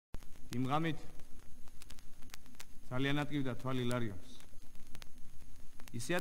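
A man speaks expressively in short, drawn-out phrases, heard through an old recording.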